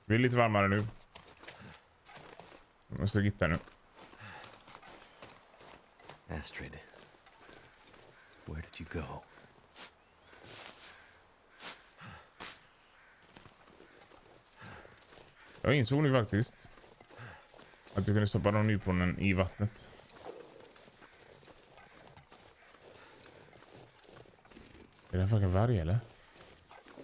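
A young man speaks calmly into a close microphone in short bursts.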